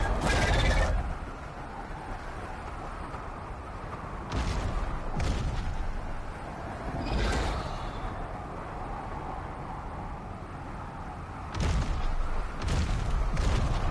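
Heavy footsteps thud as a large creature walks over rocky ground.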